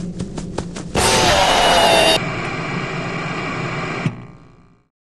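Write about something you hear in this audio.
Static hisses loudly.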